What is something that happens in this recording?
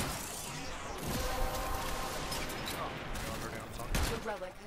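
Metal clangs as a blade slashes.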